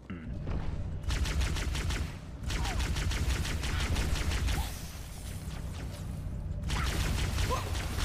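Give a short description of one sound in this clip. A weapon fires in rapid bursts.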